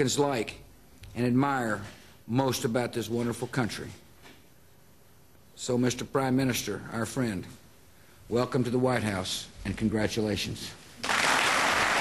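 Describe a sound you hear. A middle-aged man speaks slowly and formally into a microphone, with pauses.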